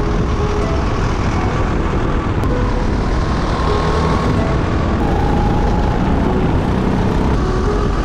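A single-cylinder racing kart engine roars close up at full throttle.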